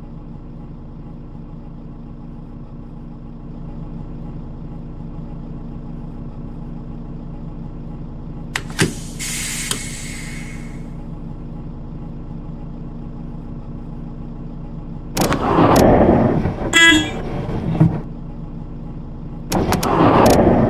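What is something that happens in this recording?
A bus engine idles with a steady low hum.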